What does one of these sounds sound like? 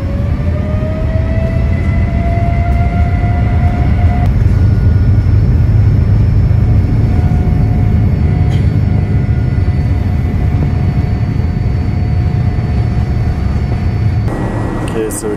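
Wheels rumble on a runway.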